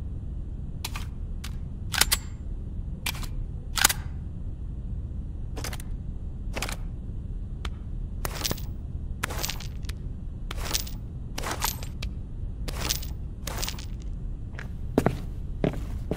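Metal clicks and clacks as pistols are handled and reloaded.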